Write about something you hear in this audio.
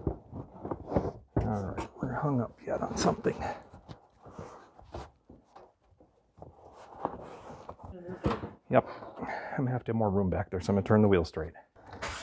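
A stiff plastic wheel liner scrapes and rattles as it is pulled loose.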